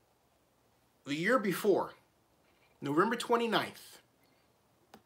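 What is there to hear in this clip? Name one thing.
A middle-aged man speaks calmly and close to the microphone, in two short phrases.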